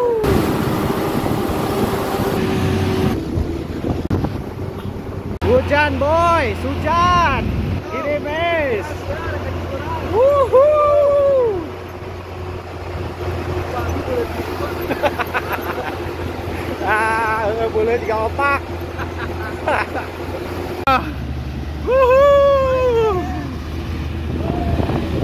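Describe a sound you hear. A jeep engine rumbles as the vehicle drives along.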